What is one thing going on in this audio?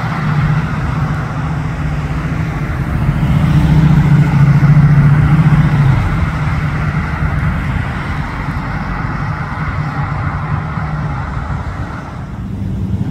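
A V8 muscle car pulls away with a deep rumble.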